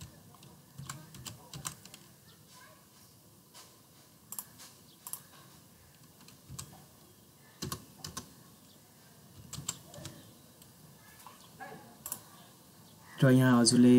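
Keys click softly on a keyboard.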